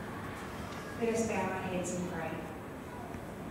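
A person speaks through a microphone and loudspeakers in an echoing hall.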